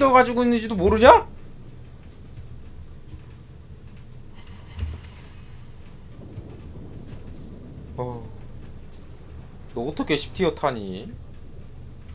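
A young man speaks with animation into a nearby microphone in short bursts.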